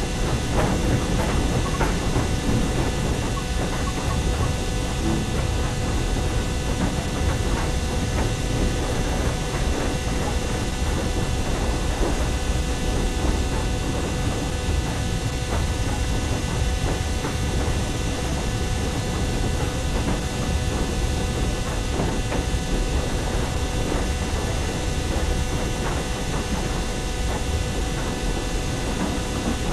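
A steam locomotive rumbles and hisses steadily.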